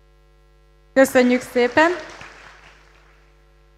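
A young woman speaks with animation through a microphone, echoing in a large hall.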